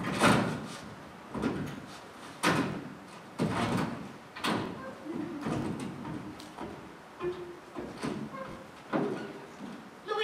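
Hammer blows knock loudly on wood.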